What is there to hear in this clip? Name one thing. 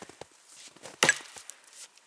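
An axe strikes a tree trunk with a sharp chop.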